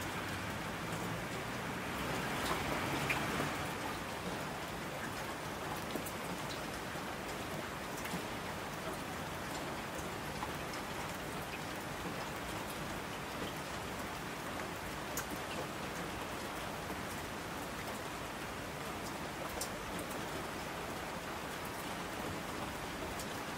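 Water rushes down a mountain stream.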